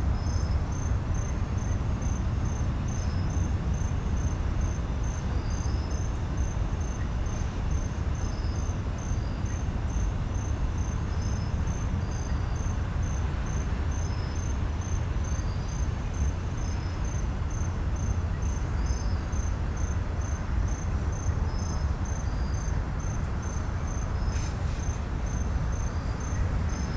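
A freight train rumbles steadily past nearby.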